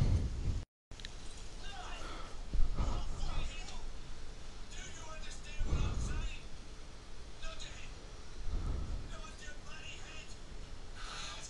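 A man speaks loudly and urgently, close by.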